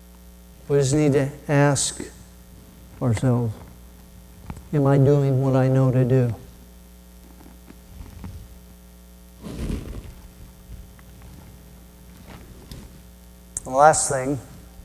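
A middle-aged man speaks slowly and deliberately through a microphone, with long pauses.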